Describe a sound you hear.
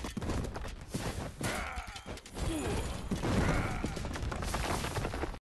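Swords clash and strike in a busy battle.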